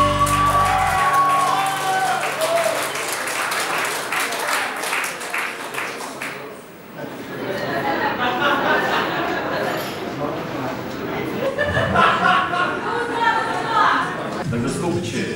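Acoustic and electric guitars play together in a live band.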